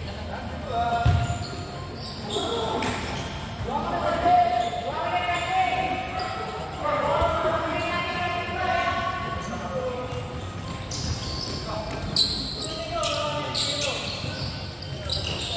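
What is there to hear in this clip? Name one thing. Children shout and call out to each other in a large echoing hall.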